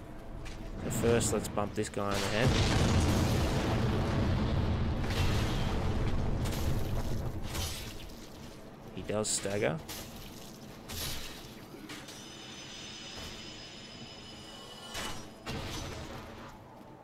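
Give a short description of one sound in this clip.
Heavy weapons swing and clang against metal armour.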